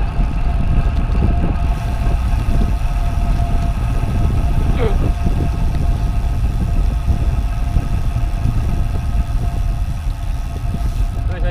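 Bicycle tyres hum steadily on smooth road.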